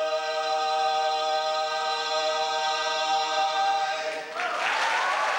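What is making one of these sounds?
A small group of singers holds a sustained chord together.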